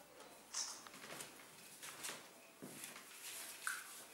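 Fabric rustles as a man pulls a cotton T-shirt over his body.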